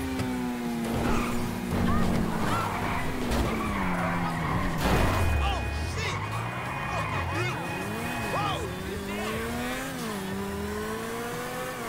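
Tyres squeal as a car drifts around corners.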